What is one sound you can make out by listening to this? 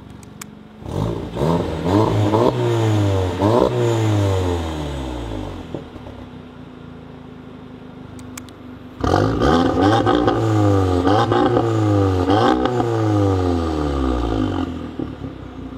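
A car engine revs hard in repeated loud bursts.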